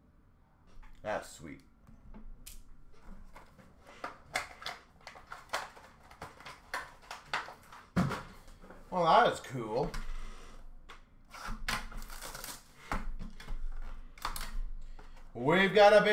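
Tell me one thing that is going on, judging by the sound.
Plastic card cases click and clatter as they are handled.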